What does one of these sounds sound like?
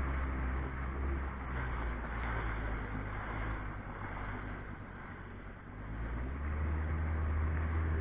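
Water sprays and splashes around a personal watercraft.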